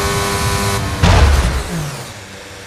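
A car crashes into a wall with a loud thud.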